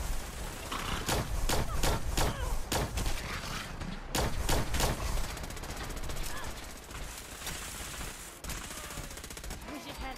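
A laser rifle fires in rapid shots.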